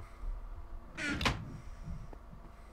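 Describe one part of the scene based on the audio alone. A wooden chest creaks shut.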